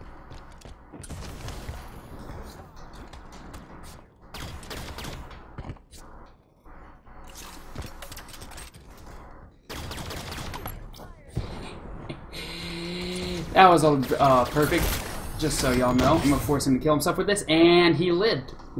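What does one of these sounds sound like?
Gunfire and electric blasts pop in quick bursts.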